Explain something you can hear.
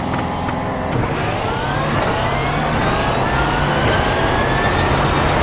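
A racing car engine roars and rises in pitch as it speeds up.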